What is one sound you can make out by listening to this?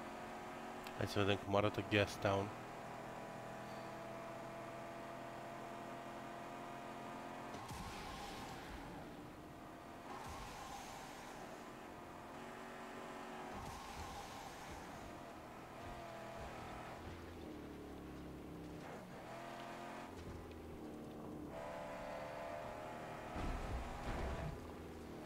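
A car engine roars steadily as a vehicle drives.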